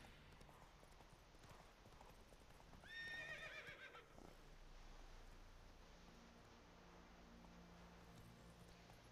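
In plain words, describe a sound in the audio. A horse's hooves thud steadily on a dirt path.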